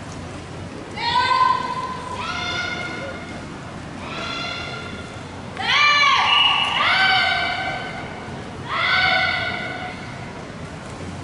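Young women shout sharply in unison in a large echoing hall.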